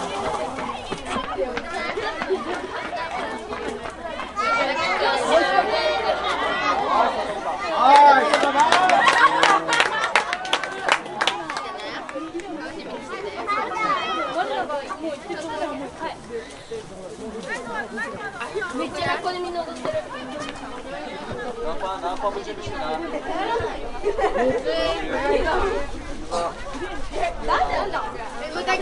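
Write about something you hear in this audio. Young women players call out to each other across the field.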